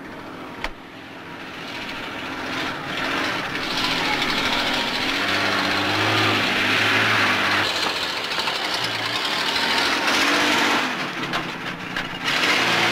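A truck engine rumbles as it drives closer.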